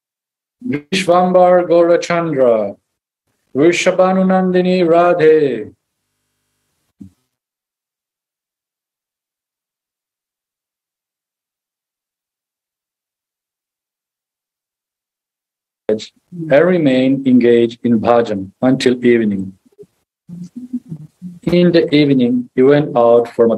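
A man chants through a microphone, heard as over an online call.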